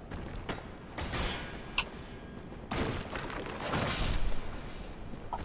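A sword clangs against a shield.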